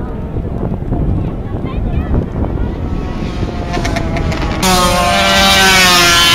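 Motorcycle engines roar at high revs as the bikes race past.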